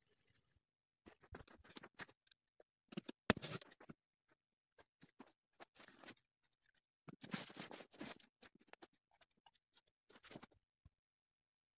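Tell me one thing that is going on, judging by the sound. Boots crunch on packed snow.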